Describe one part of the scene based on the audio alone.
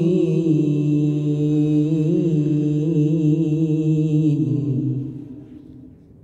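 A man sings a long, wavering chant loudly into a microphone, heard through a loudspeaker, and then stops.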